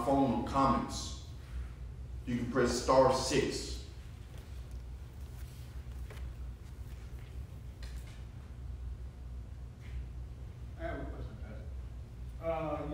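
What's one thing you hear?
A man speaks slowly and calmly into a microphone in an echoing room.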